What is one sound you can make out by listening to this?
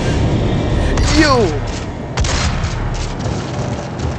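A monster snarls and growls.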